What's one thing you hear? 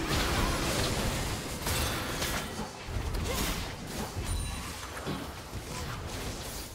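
Spell effects whoosh and crackle during a fight in a video game.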